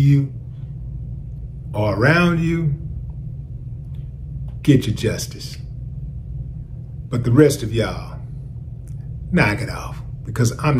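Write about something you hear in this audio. A middle-aged man speaks calmly and close to a microphone, with pauses between phrases.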